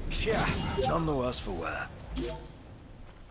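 A sword swings and strikes with a loud clash.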